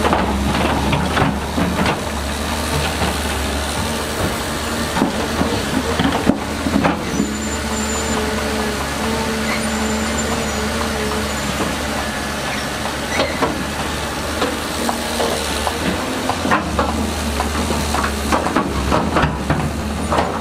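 A diesel excavator engine rumbles steadily and revs up.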